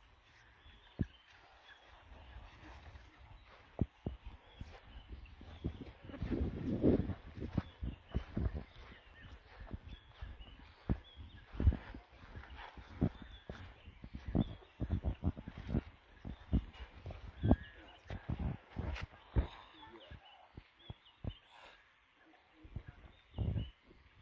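Leafy bushes rustle and brush as men push through them.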